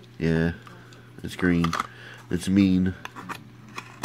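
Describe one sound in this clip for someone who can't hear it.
A small cardboard box crinkles and rustles as it is handled.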